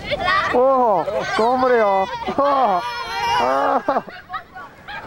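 Children shout and cheer loudly close by.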